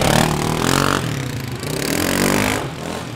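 A quad bike engine rumbles nearby.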